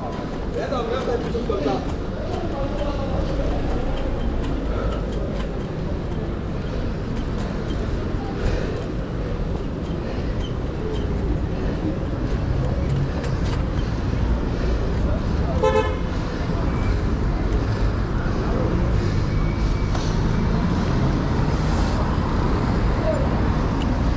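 Bicycle wheels roll and rattle over a city street.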